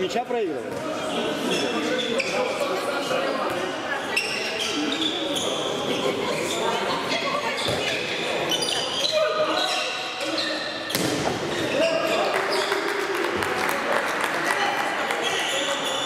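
Sneakers squeak on an indoor court floor.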